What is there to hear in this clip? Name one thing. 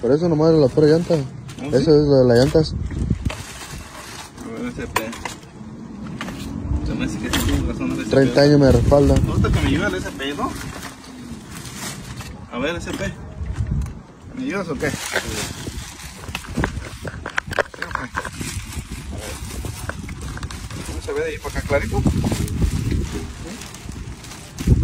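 A plastic bag rustles and crinkles as it is pulled off.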